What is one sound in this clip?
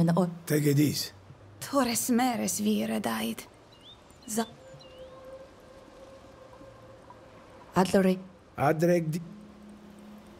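An elderly man speaks calmly and gravely.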